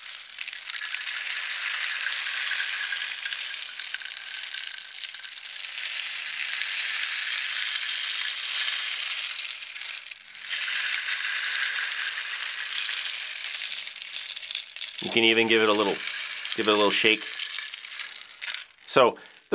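Beads trickle and patter inside a tilted wooden rain stick.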